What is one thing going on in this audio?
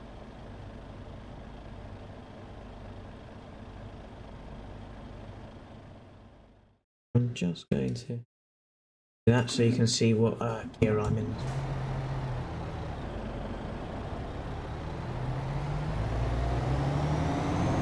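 A truck engine hums steadily, then revs higher as it picks up speed.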